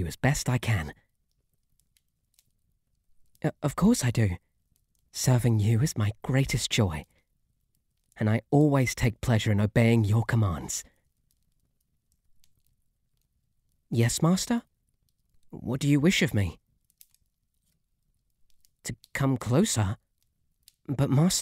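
A young man speaks softly and close to the microphone, in short bursts with pauses.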